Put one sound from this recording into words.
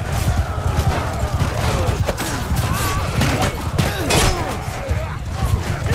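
Many horses' hooves thunder over grass.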